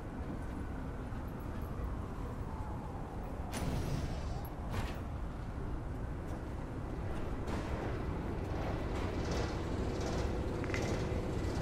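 Steam hisses softly from vents in the ground.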